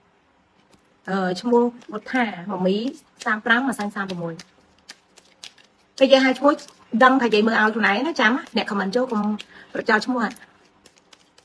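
A woman speaks with feeling close to a microphone.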